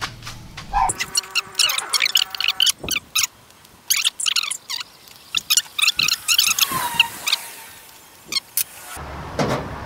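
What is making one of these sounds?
A flint striker scrapes and clicks in quick strokes.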